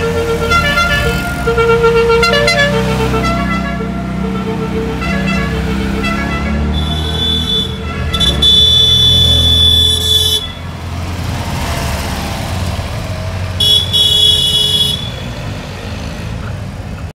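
Small car engines putter and hum as cars drive past.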